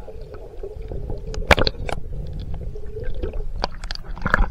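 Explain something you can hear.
Water gurgles and bubbles around a microphone underwater.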